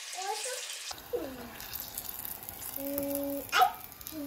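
Oil sizzles and bubbles in a pot.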